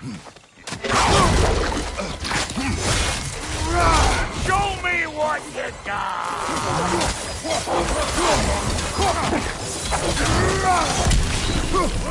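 Creatures shriek and screech.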